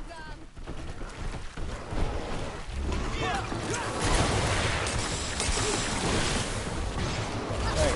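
Weapons clash and thud in a fierce fight.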